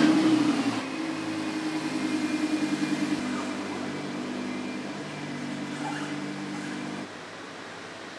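A sports car engine idles with a low rumble.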